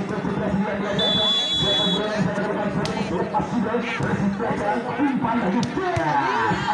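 A large outdoor crowd chatters and cheers.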